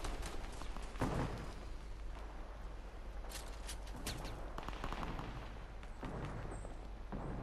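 Footsteps run on dirt and grass.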